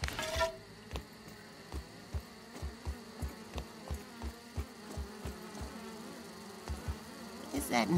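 Footsteps tap quickly and evenly while climbing.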